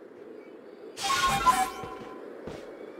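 A bright magical chime sparkles and rings out.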